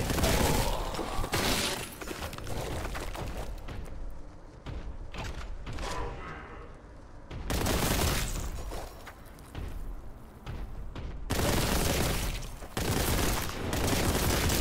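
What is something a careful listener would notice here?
Fire crackles and whooshes with blasts.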